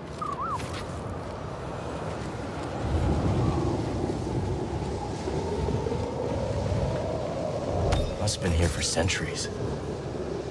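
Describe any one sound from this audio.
Footsteps crunch on sand and gravel.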